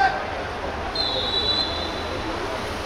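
A referee's whistle blows.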